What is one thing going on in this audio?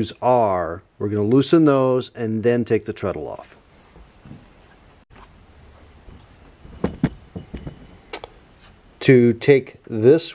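Small wooden parts click and knock.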